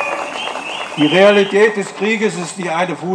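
An elderly man speaks calmly into a microphone through loudspeakers.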